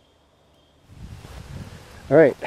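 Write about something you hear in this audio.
Footsteps rustle on a leafy forest path.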